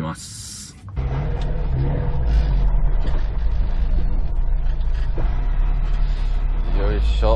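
A car engine hums steadily inside the cabin as the car drives.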